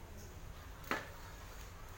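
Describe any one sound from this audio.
A man taps a container against his hand.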